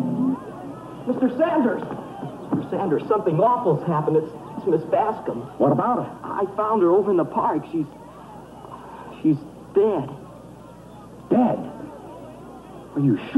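A man speaks calmly and closely.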